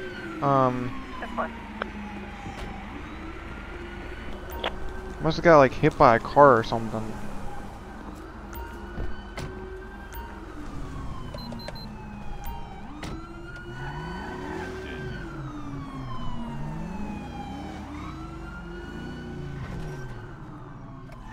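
A police siren wails, rising and falling in pitch.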